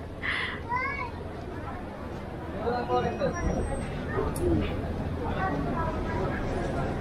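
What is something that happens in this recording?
Adult men and women chatter nearby in a busy crowd.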